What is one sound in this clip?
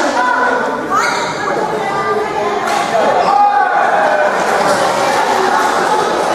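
A crowd of men and women chatter in a large echoing hall.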